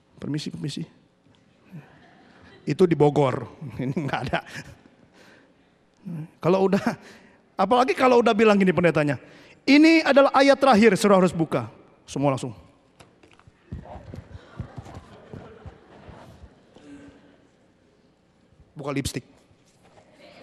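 A man speaks with animation into a microphone, heard through loudspeakers in a large hall.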